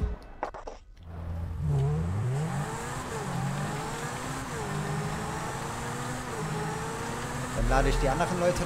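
A sports car engine roars steadily, shifting gears as it speeds along.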